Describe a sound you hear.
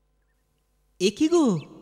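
A man speaks loudly and with feeling.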